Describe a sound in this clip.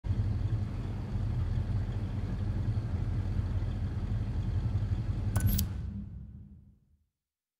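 A truck engine idles with a low, steady rumble.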